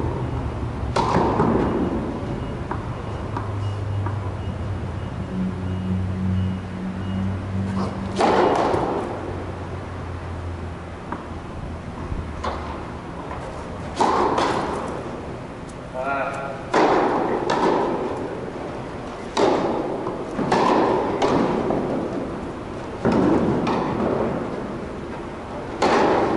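A tennis ball is struck with sharp pops that echo around a large hall.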